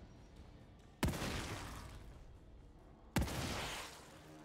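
A gun fires two loud blasts that ring out and fade.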